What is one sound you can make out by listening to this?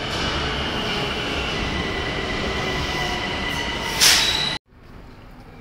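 A metro train rushes past with a loud roar and screeching wheels.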